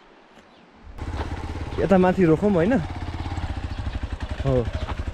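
A motorcycle engine idles and revs up close.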